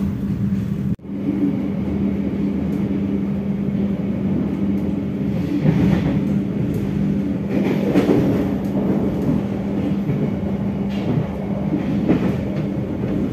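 Train wheels rumble steadily on the rails, heard from inside a moving carriage.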